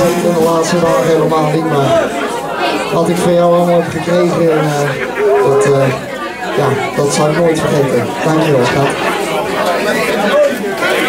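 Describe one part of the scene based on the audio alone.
A man speaks warmly, close by.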